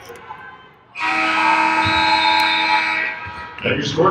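A loud buzzer sounds in a large echoing gym.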